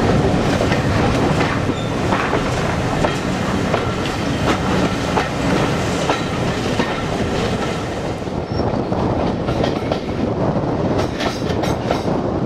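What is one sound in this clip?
A steam locomotive chuffs steadily.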